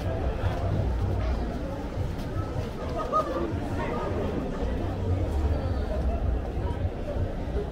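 Young people chatter outdoors in a busy street.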